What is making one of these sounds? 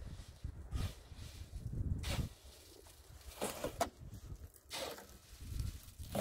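Cement mix slops off a shovel into a wheelbarrow.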